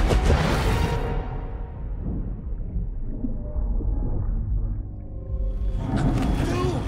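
Bubbles rush and churn underwater with a deep muffled rumble.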